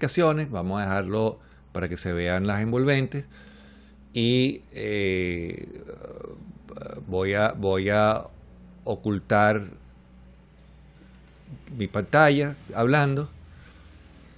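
A middle-aged man talks calmly into a nearby microphone.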